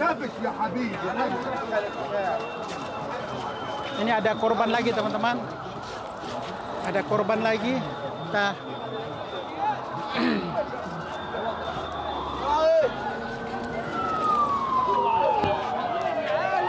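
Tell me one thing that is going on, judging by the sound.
Men talk loudly close by.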